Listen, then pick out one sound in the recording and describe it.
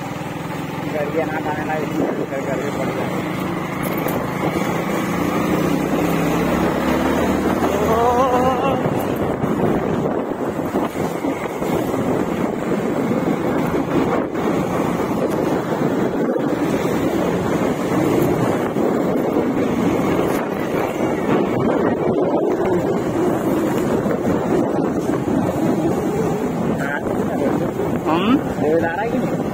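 A motorbike engine hums steadily while riding along a bumpy dirt road.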